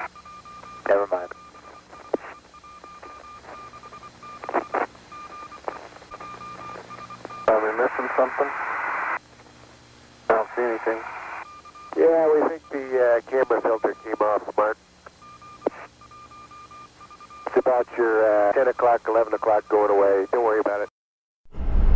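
A man speaks over a crackling radio link.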